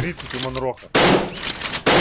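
A shotgun fires a loud blast.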